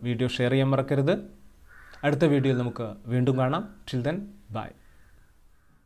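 A young man speaks calmly and warmly into a close microphone.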